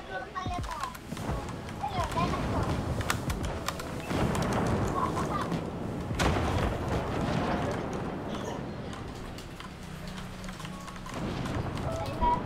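Keys on a keyboard click rapidly.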